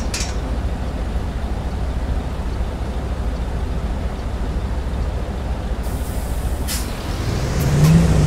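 A bus engine idles with a low rumble.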